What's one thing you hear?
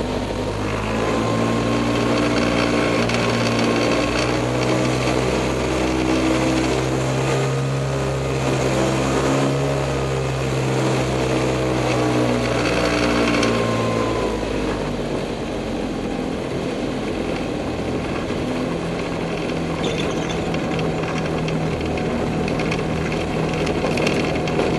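A small aircraft engine drones loudly, then drops to a lower idle.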